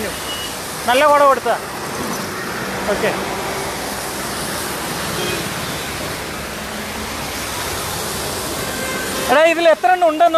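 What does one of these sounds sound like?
Vehicle tyres hiss on a wet road.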